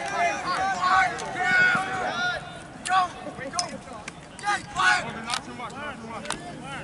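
Young men shout and call out to each other nearby on an open field.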